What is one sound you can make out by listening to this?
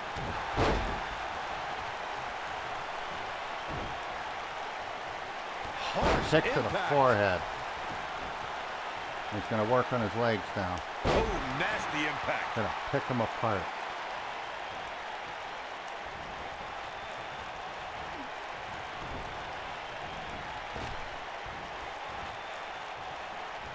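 Heavy thuds of bodies hitting a wrestling mat ring out now and then.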